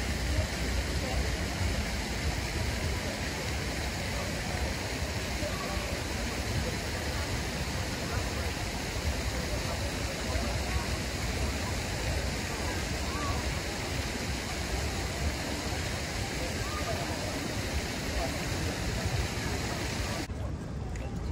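A crowd of people chatters softly in the distance outdoors.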